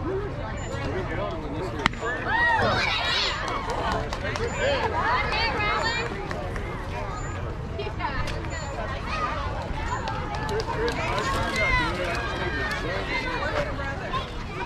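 Children shout and cheer loudly outdoors.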